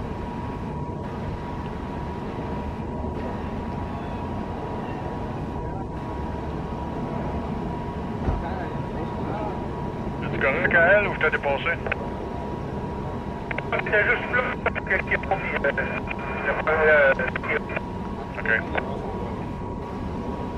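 A train rumbles steadily along the tracks as it slowly approaches.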